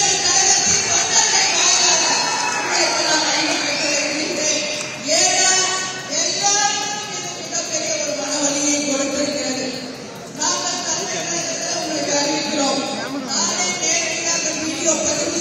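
A middle-aged woman speaks forcefully into a microphone, heard through loudspeakers in an echoing space.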